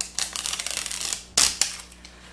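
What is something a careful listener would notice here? Hands rub and scrape on a wooden board.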